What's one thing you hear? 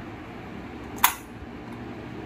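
A small metal part clicks sharply as it is set into place.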